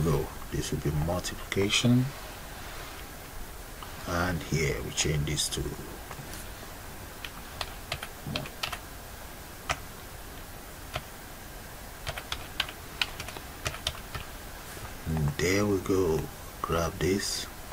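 Keys click on a keyboard as someone types.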